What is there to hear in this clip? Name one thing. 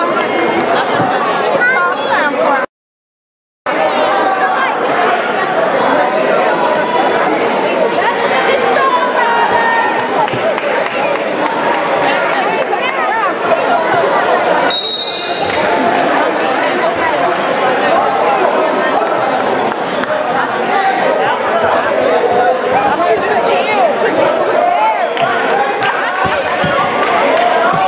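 Many voices chatter and murmur in a large echoing hall.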